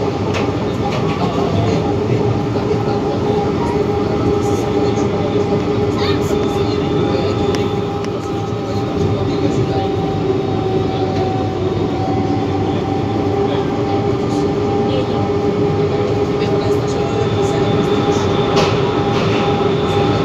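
A rubber-tyred VAL metro train rumbles along a concrete guideway.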